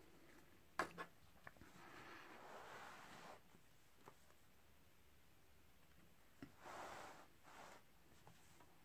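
A laptop lid creaks open.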